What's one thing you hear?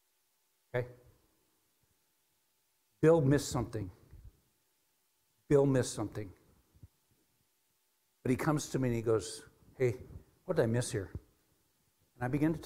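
A middle-aged man speaks with animation through a microphone, pausing between phrases.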